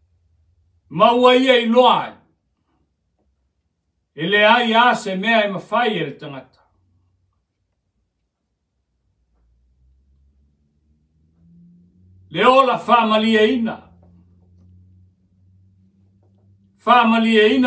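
A middle-aged man speaks slowly and forcefully into a microphone, pausing between phrases.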